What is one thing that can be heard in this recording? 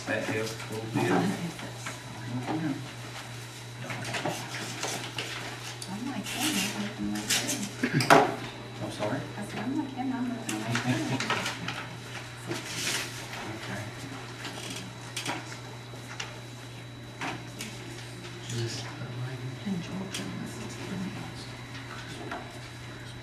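Papers rustle on a table.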